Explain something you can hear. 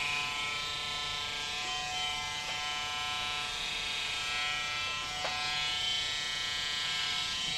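Electric hair clippers buzz through short hair.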